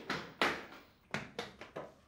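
A boy runs across a room with quick footsteps.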